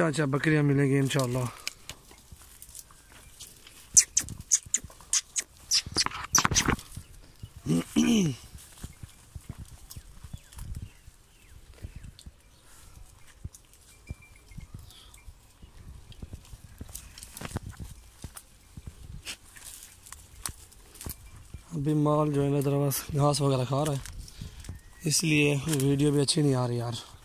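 Dry grass stalks rustle and crackle close by.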